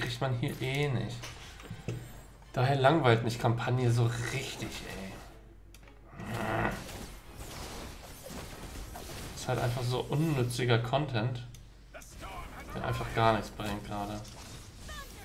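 A man talks with animation, close to a microphone.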